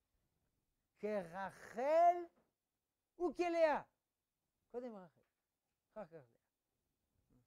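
An elderly man speaks with animation, in short phrases.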